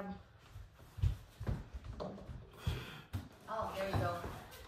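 A heavy wooden panel thuds and bumps as it is pushed.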